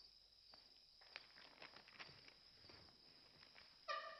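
Footsteps tap across a hard floor indoors.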